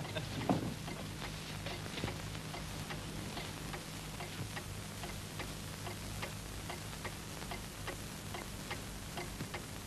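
Dishes and cutlery clink faintly.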